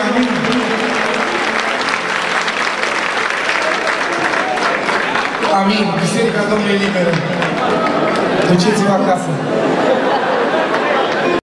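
A man sings loudly through a microphone in a large echoing hall.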